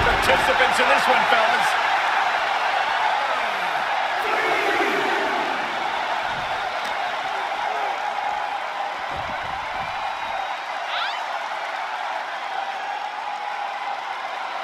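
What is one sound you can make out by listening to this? A large crowd roars and cheers steadily in a big arena.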